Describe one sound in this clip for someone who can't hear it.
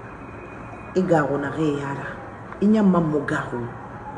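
A middle-aged woman speaks with feeling close to a microphone.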